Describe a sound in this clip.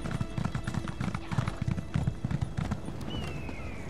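Horse hooves gallop with quick, rhythmic thuds.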